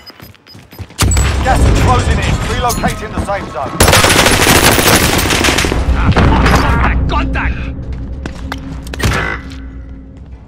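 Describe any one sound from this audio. Gunfire crackles loudly and rapidly.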